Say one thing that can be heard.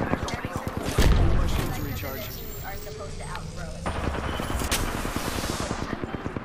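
A shield battery charges with a rising electronic hum.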